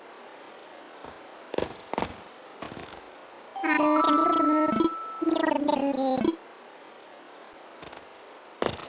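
Light footsteps patter on soft ground.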